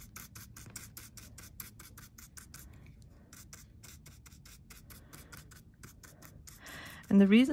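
A stiff brush dabs rapidly on a textured surface.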